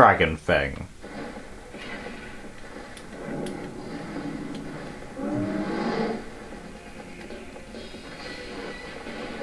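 Game combat effects whoosh and clash faintly through a television speaker.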